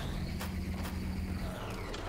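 A laser gun fires with a buzzing electronic whine.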